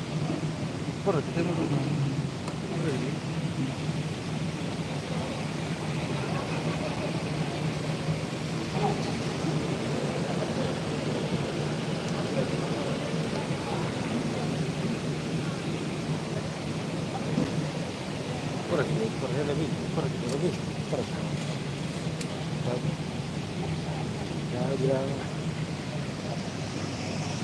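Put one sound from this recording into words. A large crowd of men murmurs and chatters in the background.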